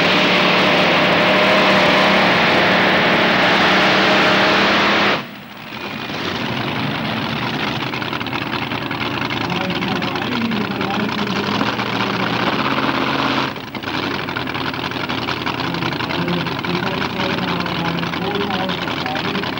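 A powerful engine roars loudly and steadily close by.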